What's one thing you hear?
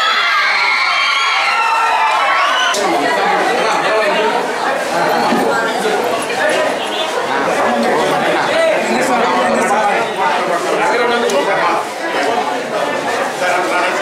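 A crowd of men talk over one another nearby.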